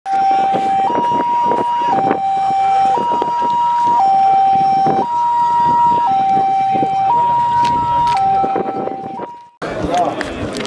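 An ambulance siren wails in a steady two-tone pattern nearby.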